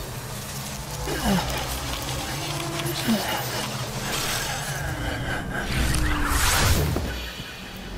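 A small machine unfolds with mechanical clicks and whirs.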